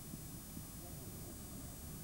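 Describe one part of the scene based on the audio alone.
A cricket bat knocks a ball far off across open ground.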